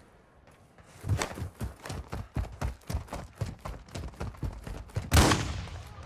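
Footsteps run quickly over gravel and dirt.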